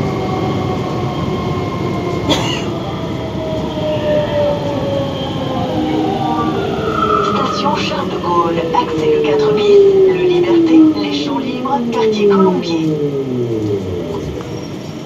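A train's motor whines and falls in pitch as the train slows into a station.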